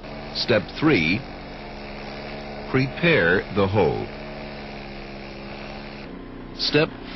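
A concrete saw whines steadily as it cuts.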